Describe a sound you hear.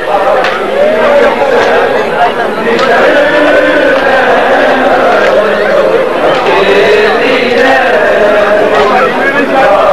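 Women weep and wail loudly.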